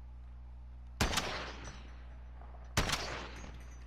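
A sniper rifle fires loud shots that echo briefly.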